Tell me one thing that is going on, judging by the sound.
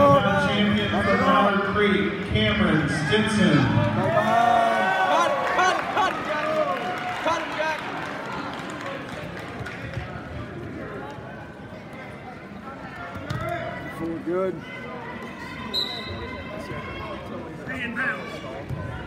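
A crowd of spectators shouts and cheers in a large echoing gym.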